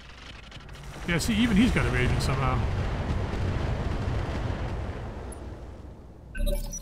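A mech's weapons fire in a loud, rumbling burst.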